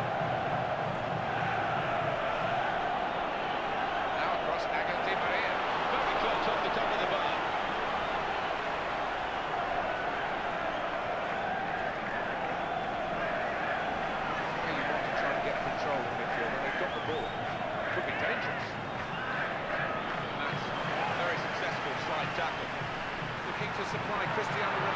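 A stadium crowd roars and chants.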